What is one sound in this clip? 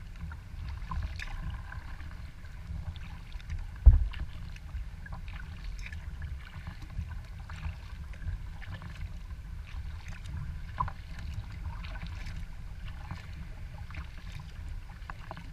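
Wind rumbles low across an open stretch of water.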